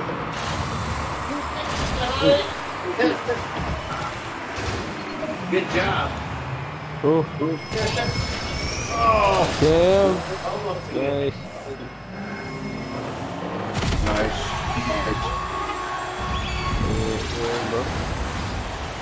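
Game cars roar and boost.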